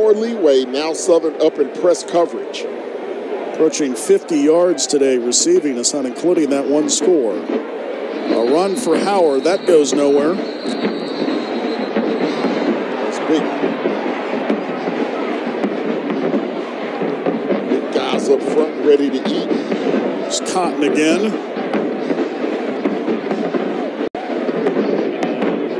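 A large crowd cheers and murmurs outdoors.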